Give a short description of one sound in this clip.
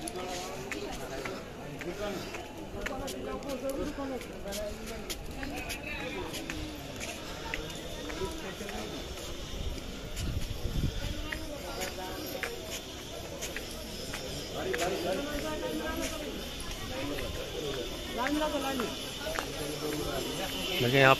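A crowd of women and men chatter nearby outdoors.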